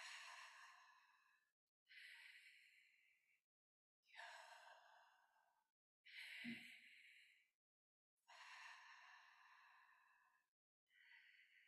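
A young woman speaks calmly into a microphone in a reverberant hall.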